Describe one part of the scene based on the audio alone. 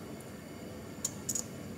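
A plastic cap clicks on a small lip tint bottle.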